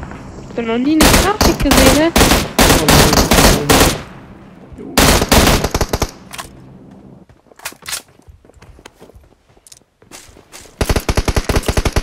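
Rapid gunfire rattles in sharp bursts.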